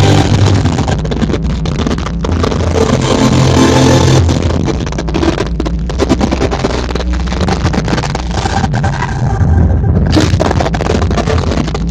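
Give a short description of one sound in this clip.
Loud electronic dance music with a heavy thumping bass plays through powerful speakers in a large echoing hall.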